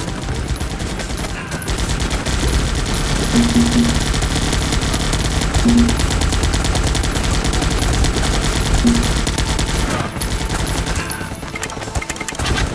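Bombs explode one after another with loud booms.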